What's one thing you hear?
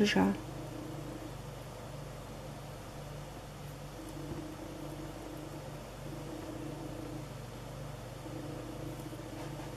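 Hands press softly on a sponge cake.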